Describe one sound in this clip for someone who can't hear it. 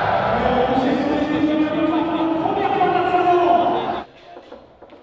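A man talks.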